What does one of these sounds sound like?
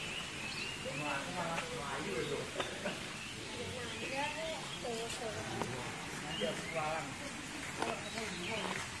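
A young man talks casually nearby, outdoors.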